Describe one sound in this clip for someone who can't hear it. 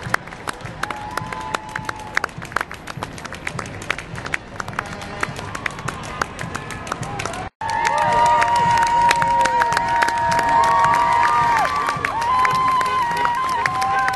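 A large crowd claps outdoors.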